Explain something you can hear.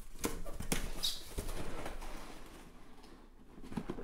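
Packs slide out of a box and clatter onto a surface.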